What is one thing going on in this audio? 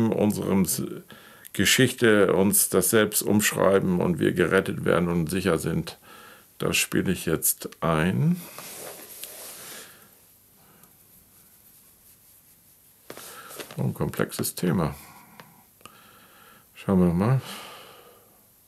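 An older man speaks calmly and closely into a microphone, in short phrases with pauses.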